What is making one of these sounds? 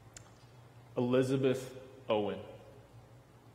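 An older man speaks a few words calmly into a microphone.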